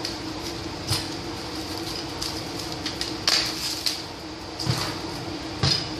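Plastic cling film crinkles and rustles.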